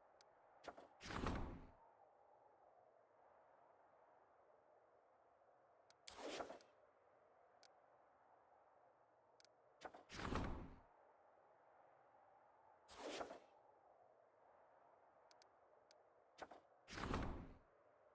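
A soft whoosh swells and fades several times.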